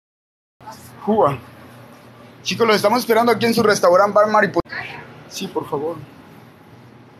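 A young man speaks close to the microphone.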